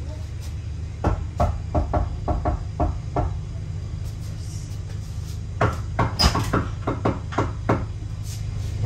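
A man knocks rapidly on a door with his knuckles.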